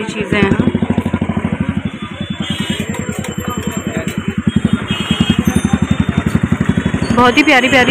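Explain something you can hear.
A scooter engine putters steadily nearby.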